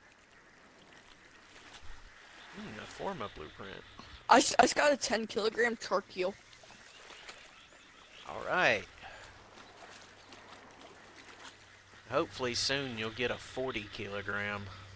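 Water rushes and splashes over rocks in a river.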